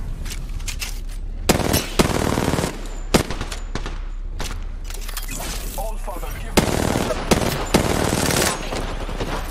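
Gunshots fire in rapid bursts with sharp cracks.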